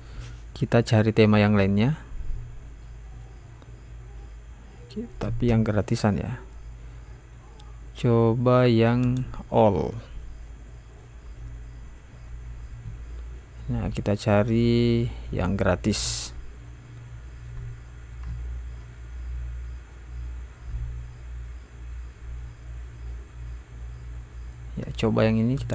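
A man talks calmly and close to a microphone, in short bursts.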